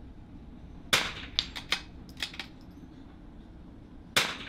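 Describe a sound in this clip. A rifle fires with a sharp crack outdoors.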